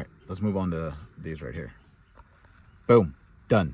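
A finger presses a button on a car radio with a soft click.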